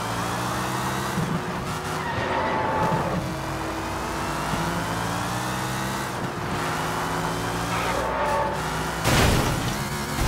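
A sports car engine roars steadily as the car speeds along.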